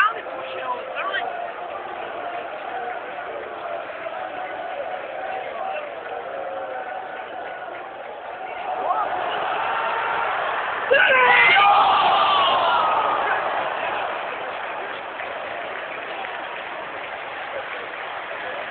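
A crowd of people talks and shouts close by, loudest in the middle.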